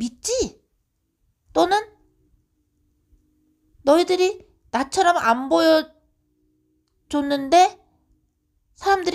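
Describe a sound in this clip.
A woman speaks with feeling, close and clear, in short bursts with pauses.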